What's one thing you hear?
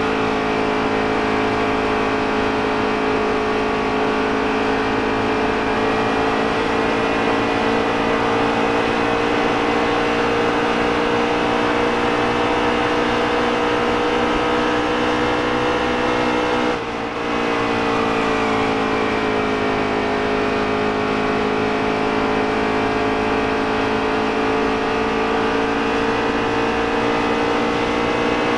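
A racing engine roars steadily at high speed, dipping briefly when shifting gear.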